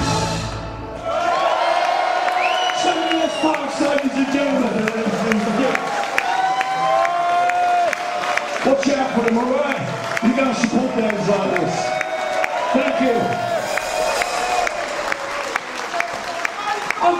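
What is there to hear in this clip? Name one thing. A rock band plays loudly.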